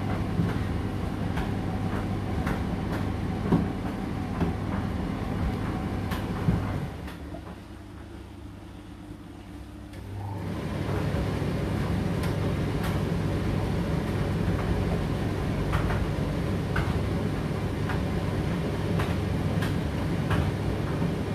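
Clothes thump inside a tumbling dryer drum.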